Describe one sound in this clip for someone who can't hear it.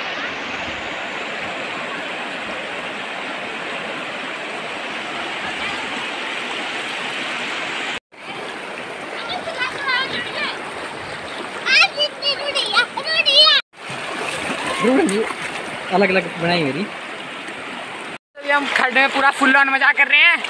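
A shallow river rushes and gurgles over stones.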